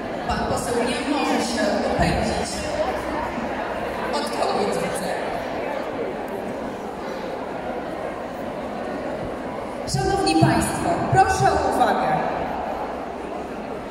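A crowd of older people chatters in a large echoing hall.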